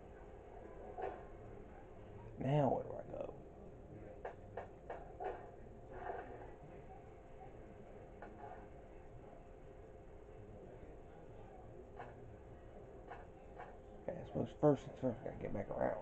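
Short electronic menu blips sound now and then from a television speaker.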